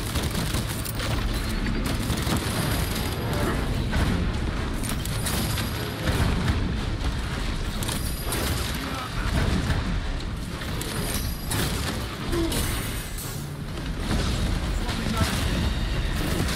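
A monster roars and growls.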